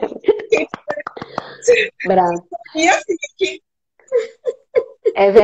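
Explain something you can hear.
A middle-aged woman talks with animation over an online call.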